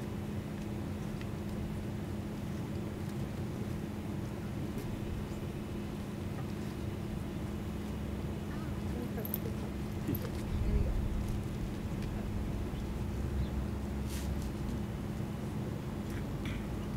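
A young man talks quietly close by.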